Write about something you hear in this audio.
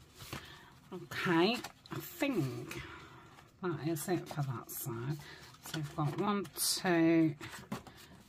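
Pages flip over.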